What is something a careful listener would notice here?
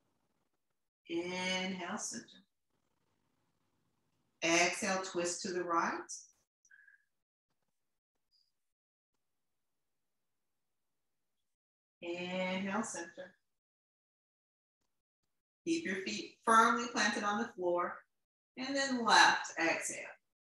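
A young woman speaks calmly in short phrases with pauses.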